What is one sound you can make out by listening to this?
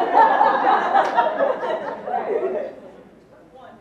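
A group of people applauds in a large room, then the clapping dies away.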